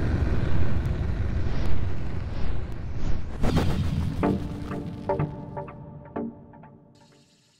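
A bullet whooshes past.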